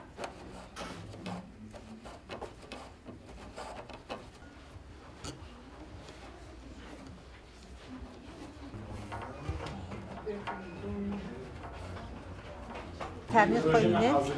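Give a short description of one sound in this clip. Threads are tugged and knotted on a loom with soft plucking clicks.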